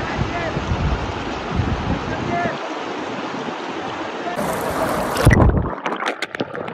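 River water rushes loudly over rocks.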